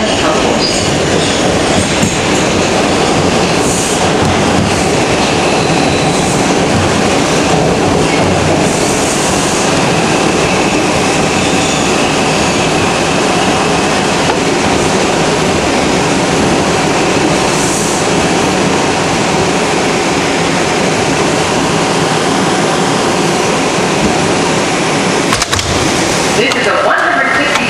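A subway train rumbles and rattles loudly along the tracks as it pulls into a station.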